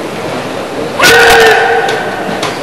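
A young boy gives a sharp, loud shout.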